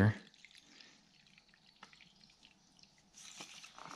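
Liquid trickles from a bottle into a plastic cup.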